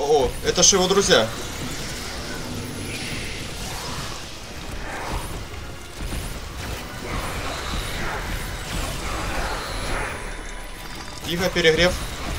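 Energy beams crackle and hiss steadily.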